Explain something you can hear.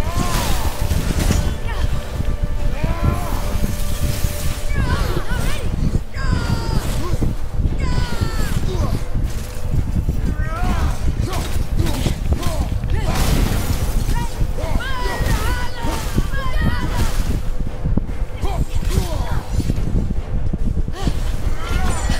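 Large wings flap and beat.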